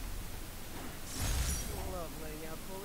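Wind rushes past during a fast swing through the air.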